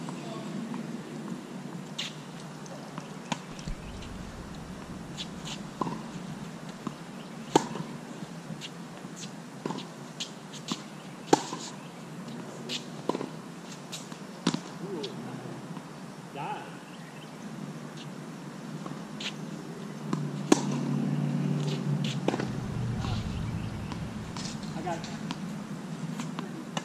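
Tennis balls bounce on a hard court with soft thuds.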